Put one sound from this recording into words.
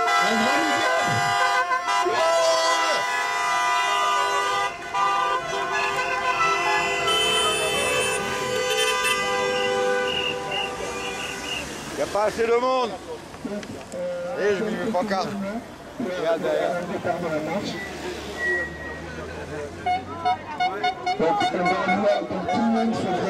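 A crowd of men and women chants and sings loudly outdoors nearby.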